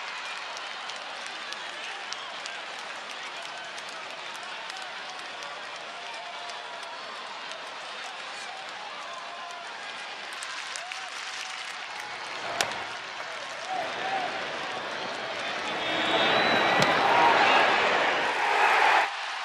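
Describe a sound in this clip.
A stadium crowd murmurs steadily in a large open space.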